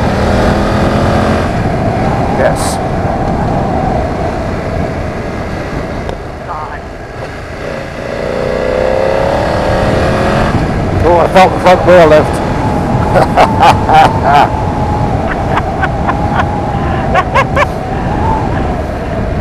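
A motorcycle engine hums steadily and rises and falls in pitch as the rider changes speed.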